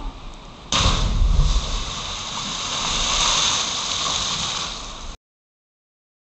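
Water churns and fizzes after a splash.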